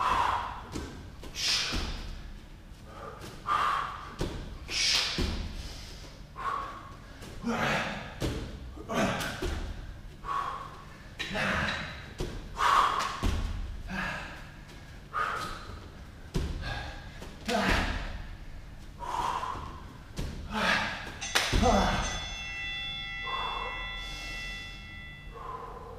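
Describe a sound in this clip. A man breathes heavily and pants from exertion.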